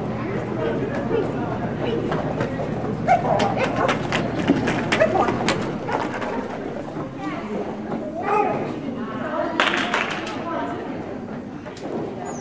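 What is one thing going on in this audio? A dog's paws patter across a hard floor.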